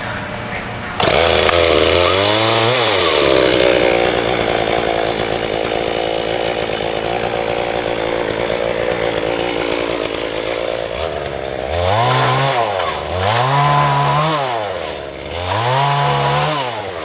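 A chainsaw engine starts, idles loudly and revs up and down repeatedly.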